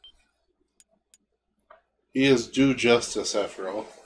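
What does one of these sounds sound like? A short electronic menu blip sounds.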